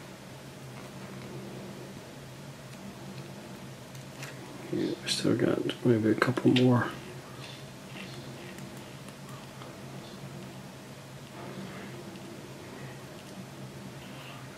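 Small metal parts click and scrape softly as they are screwed together.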